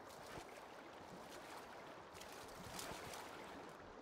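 Water splashes as a swimmer climbs out onto the bank.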